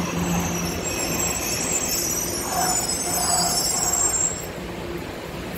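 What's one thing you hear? Train brakes hiss and squeal.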